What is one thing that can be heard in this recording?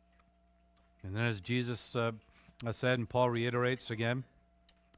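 A middle-aged man speaks with emphasis through a microphone.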